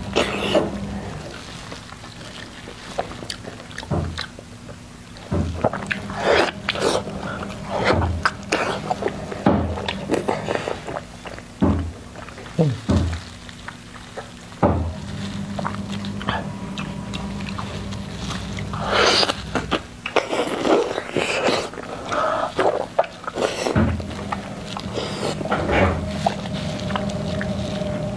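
A young woman chews and smacks her lips loudly, close to a microphone.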